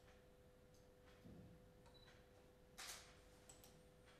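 A sheet of paper rustles softly in a hand.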